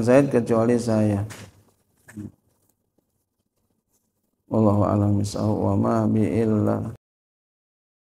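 An elderly man speaks calmly into a microphone, heard through a loudspeaker.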